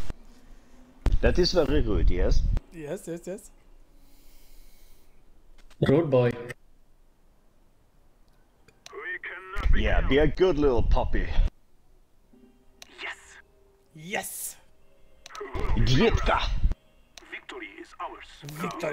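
A man talks with animation, close to a microphone, in bursts with pauses.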